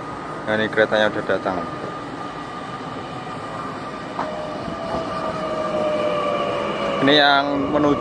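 A train rolls into the station and brakes.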